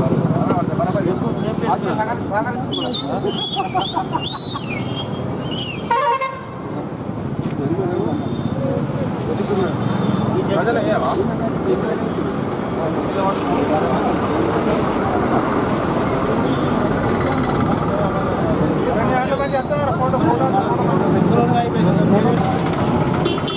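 A crowd of men chatter outdoors.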